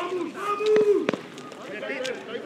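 A football thumps off a kick.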